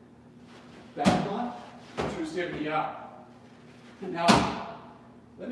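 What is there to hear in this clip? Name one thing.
A balance board thumps and rolls on the floor.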